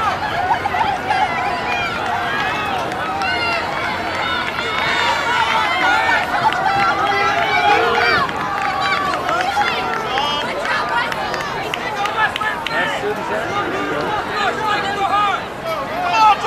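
A crowd of spectators chatters outdoors, with many voices overlapping.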